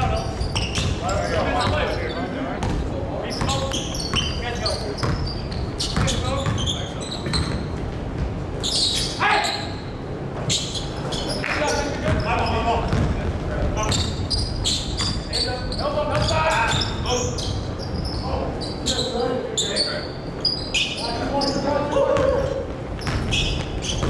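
Young men call out and shout to one another.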